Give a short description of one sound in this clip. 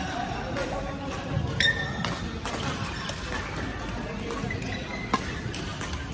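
Rackets strike shuttlecocks on neighbouring badminton courts.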